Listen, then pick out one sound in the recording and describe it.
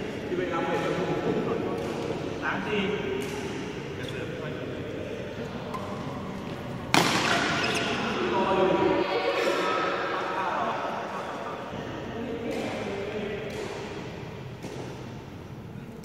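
Men talk and call out in a large echoing hall.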